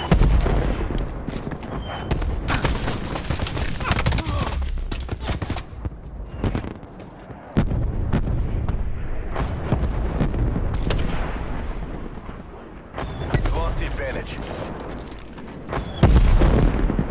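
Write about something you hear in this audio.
Rifle shots crack loudly.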